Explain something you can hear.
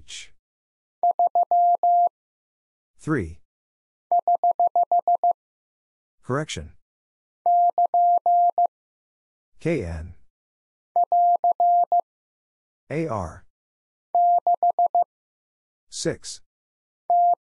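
A telegraph key taps out short and long Morse code beeps in bursts.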